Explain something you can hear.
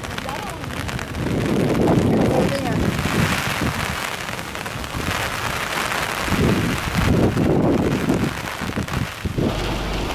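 Wind gusts buffet loudly in bursts.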